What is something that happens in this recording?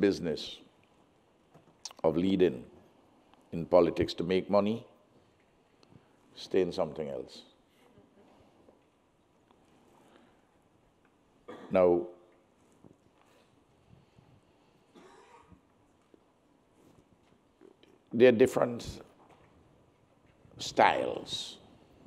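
An elderly man speaks calmly and deliberately into a microphone, with long pauses.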